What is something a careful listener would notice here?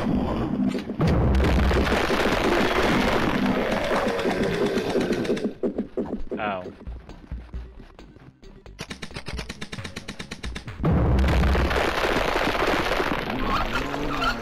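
A paintball gun fires rapid popping shots.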